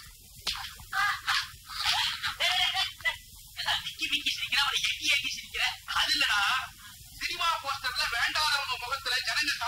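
A second man answers in a calm voice.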